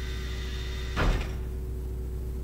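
Elevator doors slide open with a whoosh.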